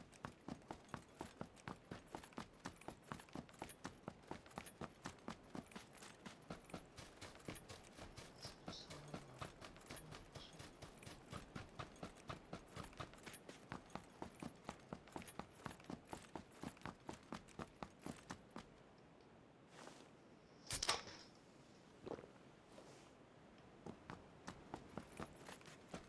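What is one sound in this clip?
Footsteps run on dirt.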